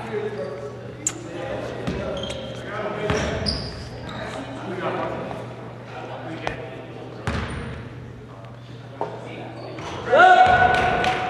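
Young men call out to each other across the echoing gym.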